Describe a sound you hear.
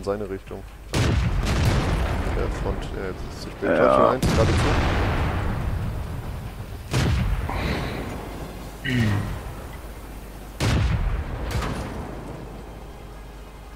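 A tank cannon fires loud booming shots that echo and roll away.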